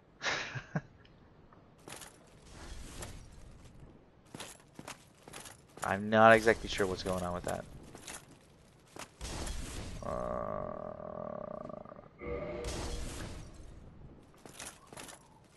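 Heavy armoured footsteps clank on stone.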